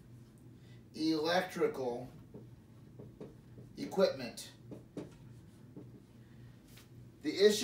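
A man speaks calmly nearby, in short phrases.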